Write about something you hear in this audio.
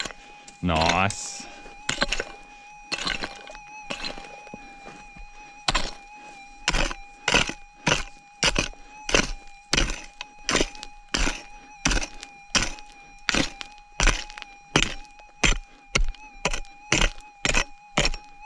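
A metal detector hums with a steady tone.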